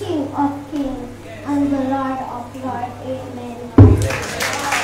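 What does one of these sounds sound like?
A young girl speaks calmly into a microphone in an echoing hall.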